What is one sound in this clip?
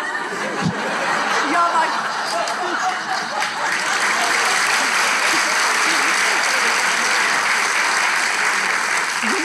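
A large audience laughs loudly in an echoing hall.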